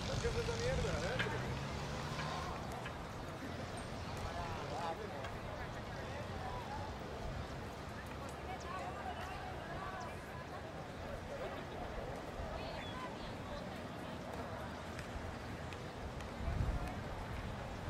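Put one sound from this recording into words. A crowd of spectators chatters in the distance outdoors.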